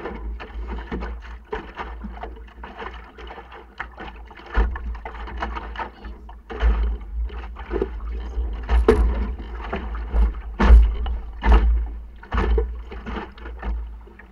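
Water splashes against a small boat's hull.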